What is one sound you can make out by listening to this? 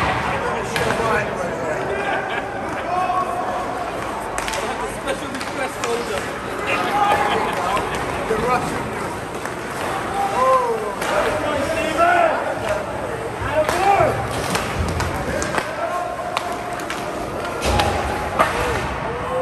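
Young players shout to each other across the echoing rink.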